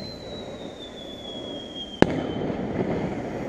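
A firework whistles as it climbs into the sky.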